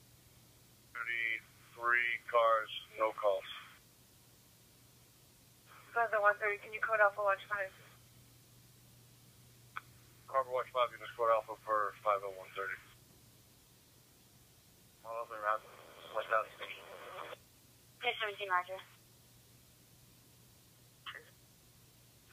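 A radio scanner's small loudspeaker plays short bursts of radio transmissions with pauses between them.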